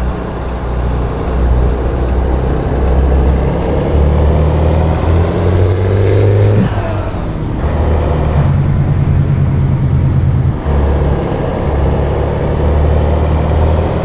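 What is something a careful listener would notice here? A truck engine rumbles steadily as it drives, heard from inside the cab.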